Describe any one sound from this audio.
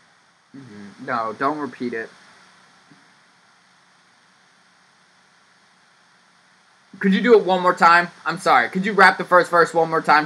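A young man talks through an online call.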